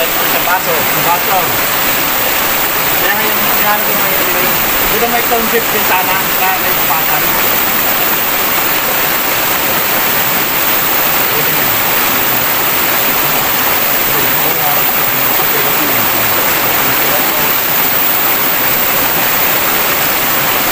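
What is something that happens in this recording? A stream rushes steadily nearby.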